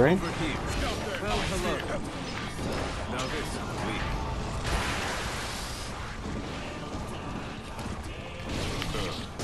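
Fighting game blows and energy blasts crash and whoosh.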